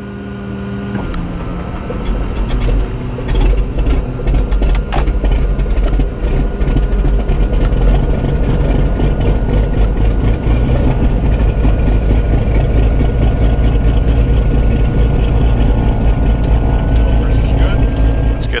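A propeller engine starts and rumbles steadily, loud and low.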